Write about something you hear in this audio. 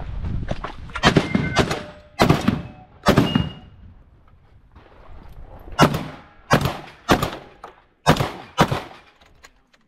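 A shotgun fires loud blasts in quick succession outdoors.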